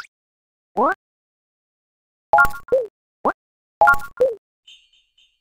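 Short electronic menu chimes and rising blips sound in quick bursts.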